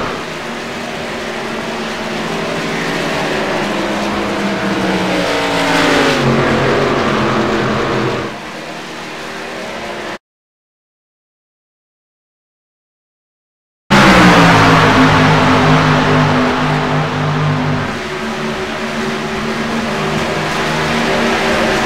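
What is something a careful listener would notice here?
Race car engines roar loudly, rising and falling in pitch as the cars pass.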